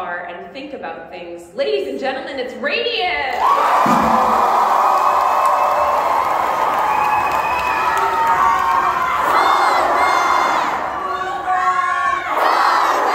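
A live band plays along with the choir.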